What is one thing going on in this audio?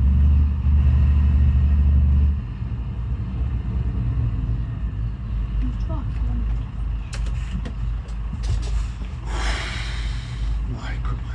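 A truck engine rumbles low and steadily.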